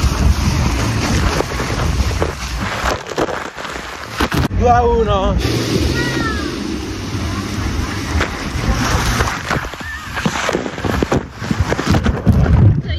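Water splashes and rushes loudly close by.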